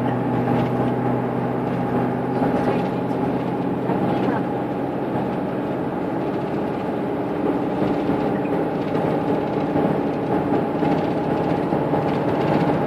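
A vehicle's engine hums steadily from inside as it drives along.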